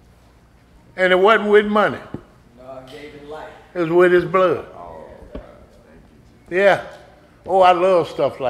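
An elderly man preaches with animation into a microphone.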